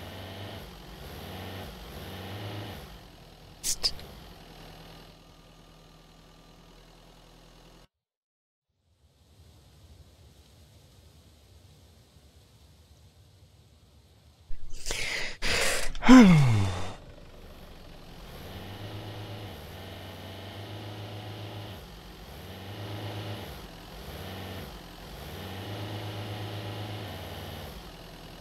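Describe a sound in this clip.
A car engine idles with a low, uneven rumble.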